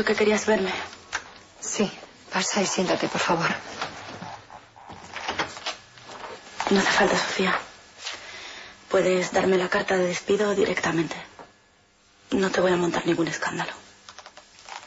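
Young women talk with each other indoors, one speaking tensely.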